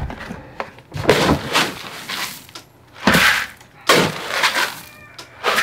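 Dry grain rustles and pours as hands scoop it.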